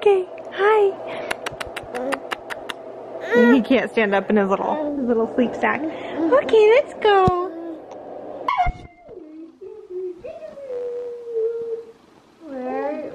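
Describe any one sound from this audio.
A baby babbles and coos.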